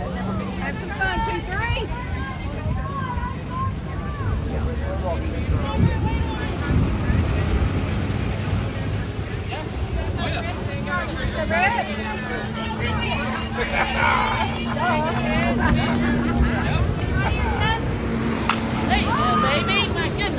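Young women shout and chatter across an open field outdoors.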